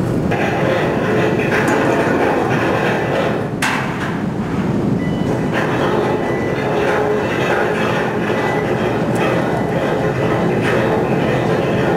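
An anchor chain clanks and scrapes as it is lifted.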